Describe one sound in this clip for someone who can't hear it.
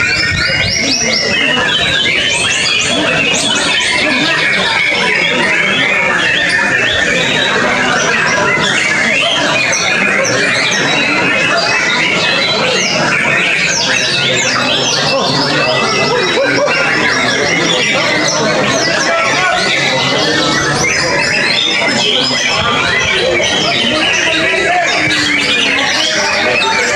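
A songbird sings loud, rapid chirps and trills close by.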